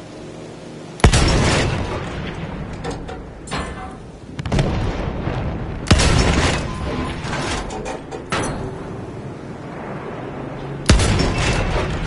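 A heavy gun fires loud booming shots.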